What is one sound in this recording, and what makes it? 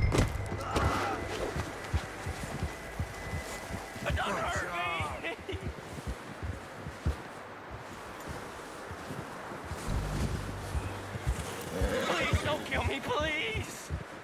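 A horse's hooves thud through deep snow.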